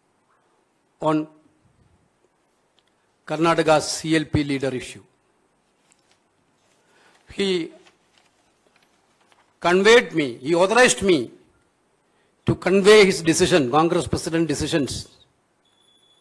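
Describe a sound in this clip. A middle-aged man speaks calmly into microphones, in short phrases with pauses.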